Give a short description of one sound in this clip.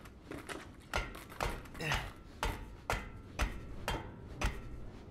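Hands knock and thump against a wooden frame.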